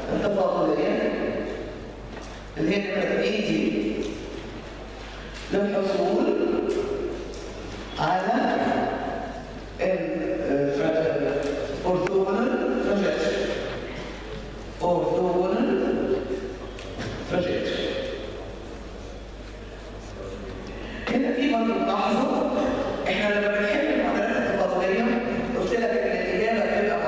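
A woman speaks through a microphone in a lecturing tone.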